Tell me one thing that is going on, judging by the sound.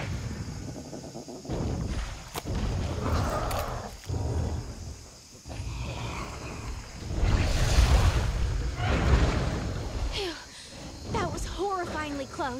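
A blade swings and slashes with sharp swishes.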